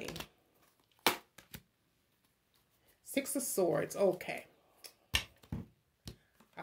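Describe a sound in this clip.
Cards shuffle and flick in a woman's hands.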